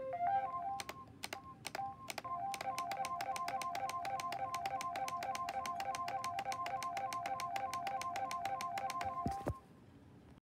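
Electronic music with quick ticking beats and bright beeping tones plays through small speakers, then stops abruptly.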